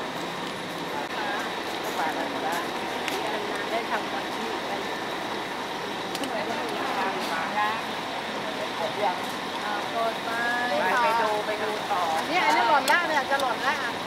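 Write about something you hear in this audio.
Middle-aged women chat with animation close by, outdoors.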